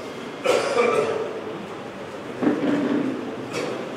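A microphone thumps and knocks as it is handled.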